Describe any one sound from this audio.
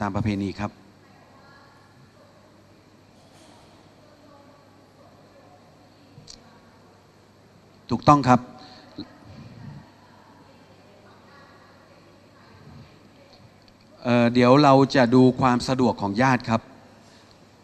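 A man speaks calmly into a microphone, in bursts with long pauses.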